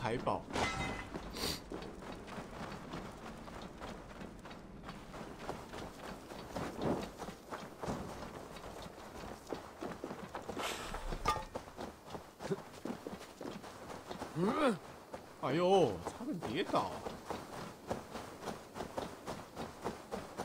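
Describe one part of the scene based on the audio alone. Footsteps tread steadily over dirt and grass.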